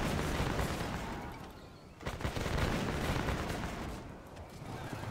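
Muskets fire in a crackling volley.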